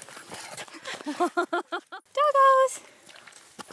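A dog barks and whines excitedly.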